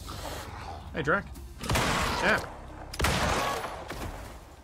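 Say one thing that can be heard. A shotgun fires loudly.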